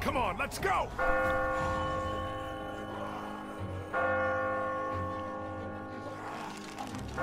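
A large bell rings out loudly and its tone slowly fades.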